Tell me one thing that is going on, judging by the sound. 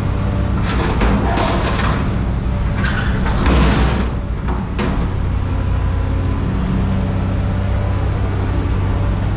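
A diesel engine rumbles steadily close by.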